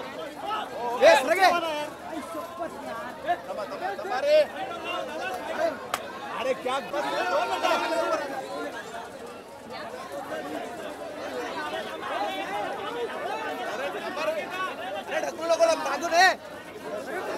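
Men shout loudly nearby.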